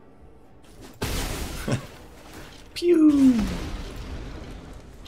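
A magical game sound effect bursts with a fiery whoosh.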